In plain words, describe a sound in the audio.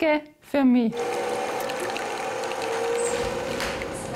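Coffee pours from a machine into a cup.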